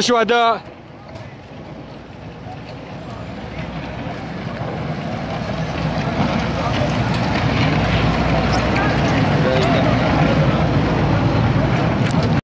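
A crowd of men talk and call out outdoors, growing louder.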